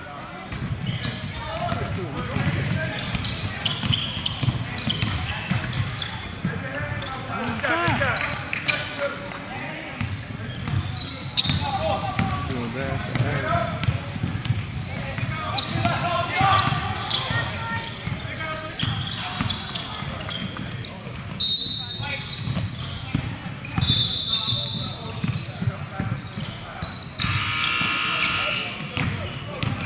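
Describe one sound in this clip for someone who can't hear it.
A basketball bounces with echoing thuds in a large hall.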